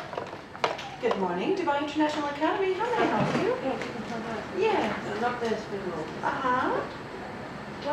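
A woman talks calmly on a phone close by.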